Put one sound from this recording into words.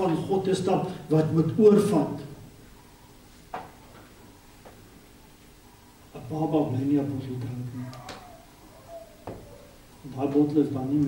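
An elderly man speaks with emphasis through a microphone, pausing between phrases.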